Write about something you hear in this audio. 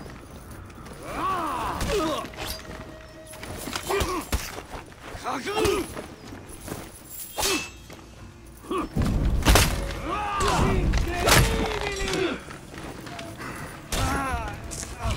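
Warriors grunt and shout with effort during the fight.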